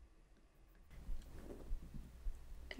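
Another young woman answers quietly and close by.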